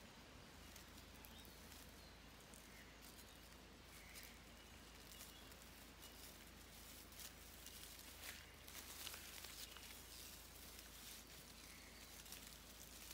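Dry leaves rustle and crunch as a lizard walks over them.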